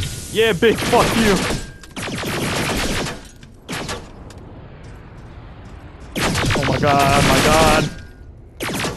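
A rifle fires rapid bursts of automatic shots.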